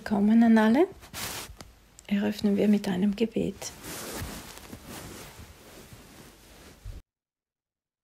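Clothes rustle as a man moves close to the microphone.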